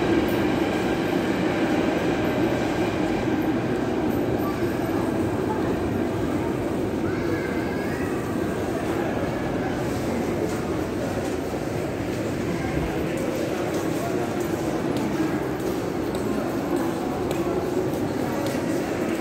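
A busy crowd murmurs and chatters in a large echoing hall.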